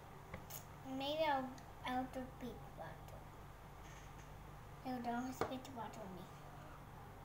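A young girl speaks softly and close by.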